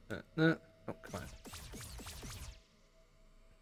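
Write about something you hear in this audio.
Video game effects burst and crackle loudly.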